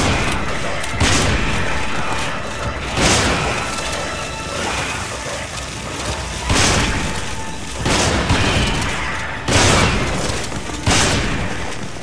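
Gunshots ring out loudly, one at a time, with a short echo.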